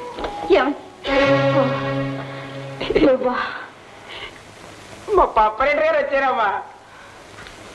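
A man speaks loudly and with animation.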